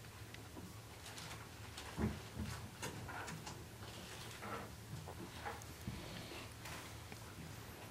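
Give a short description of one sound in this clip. A young woman speaks calmly into a microphone in an echoing room.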